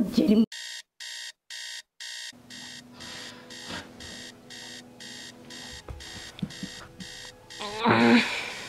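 A phone alarm beeps in a fast, steady repeating rhythm.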